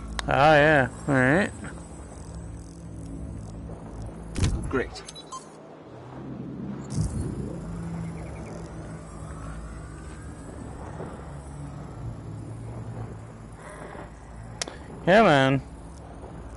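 A small robot chirps with quick warbling electronic beeps.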